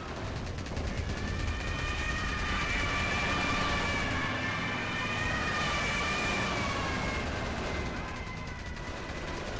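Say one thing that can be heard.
A propeller plane drones overhead.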